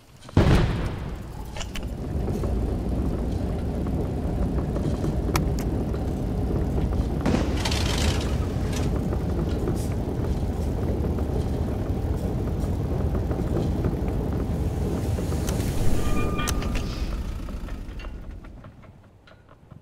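A heavy engine rumbles steadily, then fades away.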